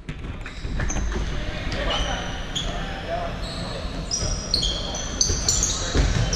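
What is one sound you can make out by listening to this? A ball thuds as it is kicked and bounces.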